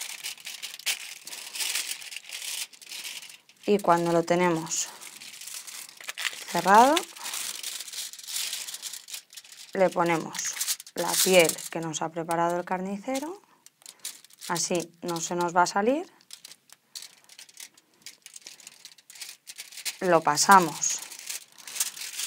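Foil crinkles under handling hands.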